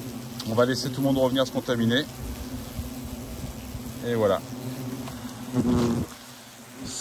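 Wasps buzz close by.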